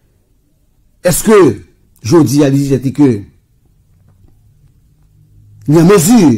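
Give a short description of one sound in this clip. A man speaks with animation into a close microphone, in short bursts.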